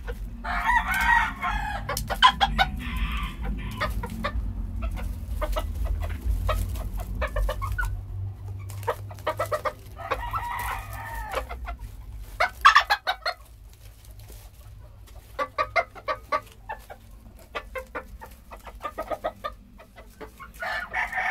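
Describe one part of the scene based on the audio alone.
Chickens scratch and rustle in dry straw.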